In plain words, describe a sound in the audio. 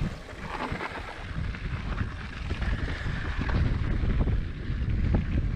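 Wind rumbles past a fast-moving rider outdoors.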